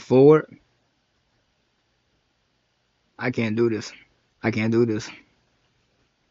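A young man speaks close to a microphone in short, flat bursts.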